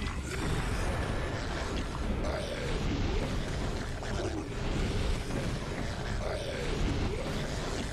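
A ghostly spell whooshes and hisses.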